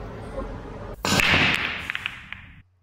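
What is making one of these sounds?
Billiard balls clack sharply against each other and roll across the table.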